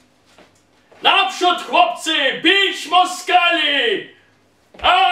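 A man shouts loudly and forcefully.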